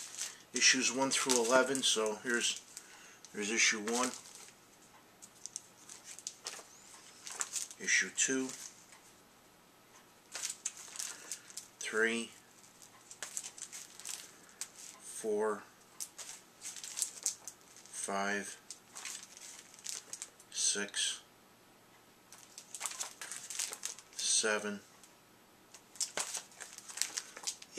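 Plastic sleeves crinkle and rustle as comics are handled.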